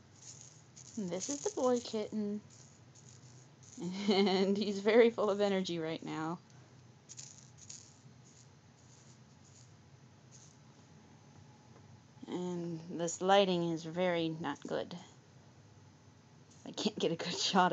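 Cats scuffle and paw at a feather toy on a soft blanket.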